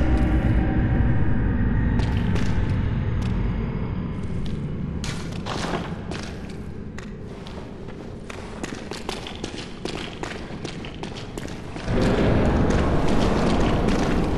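Footsteps echo through a stone corridor.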